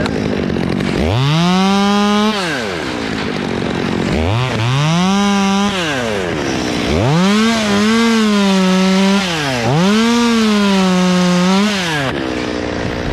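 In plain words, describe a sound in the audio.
A chainsaw engine revs up and down close by, several times.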